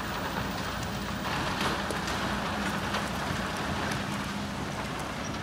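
Excavator engines rumble steadily nearby.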